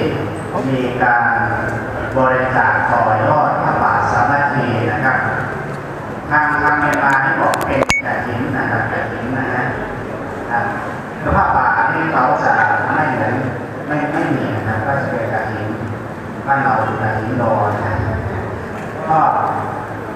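A man speaks steadily over a loudspeaker in a large echoing hall.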